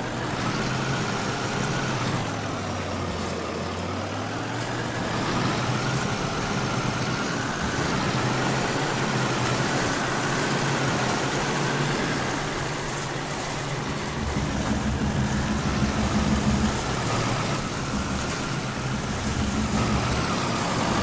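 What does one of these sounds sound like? A truck engine hums and strains steadily.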